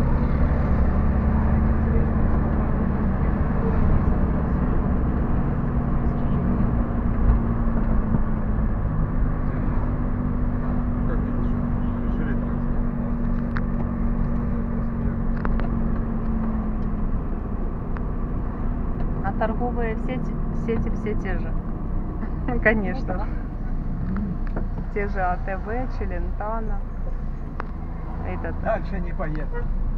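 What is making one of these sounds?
Traffic rumbles past on the road nearby.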